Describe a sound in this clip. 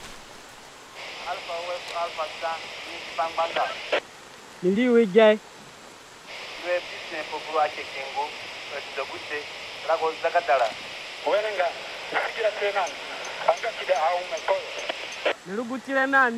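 A man speaks through a crackling, hissing radio.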